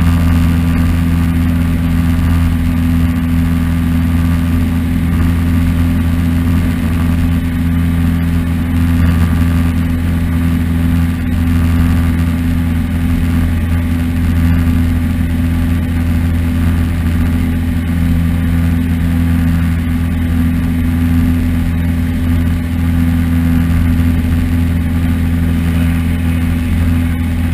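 A small plane's engine drones loudly and steadily from inside the cabin.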